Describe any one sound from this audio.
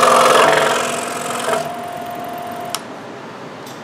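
A scroll saw buzzes as it cuts through wood.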